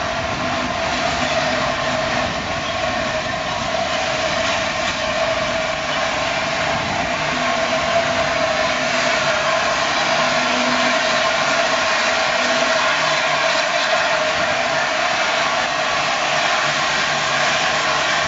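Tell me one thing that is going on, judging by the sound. A steam locomotive chuffs steadily as it pulls away slowly.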